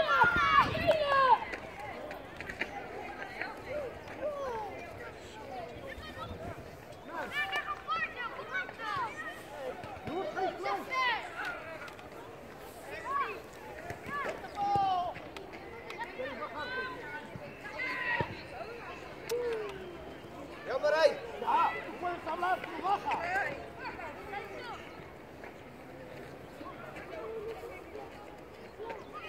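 Young players and spectators shout and call out across an open field outdoors.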